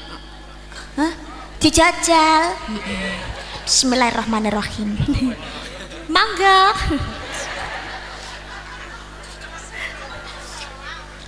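A young woman speaks and sings expressively into a microphone, heard through loudspeakers.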